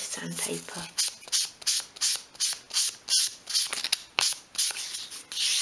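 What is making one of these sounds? Sandpaper rasps in quick, even strokes against a wooden edge.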